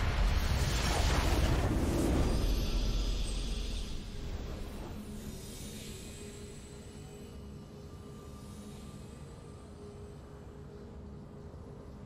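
A triumphant fanfare swells and fades out.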